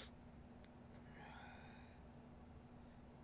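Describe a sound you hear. A man speaks quietly close to a microphone.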